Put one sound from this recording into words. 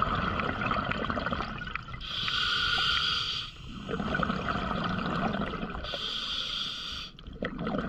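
Air bubbles gurgle and rush past underwater, in repeated bursts.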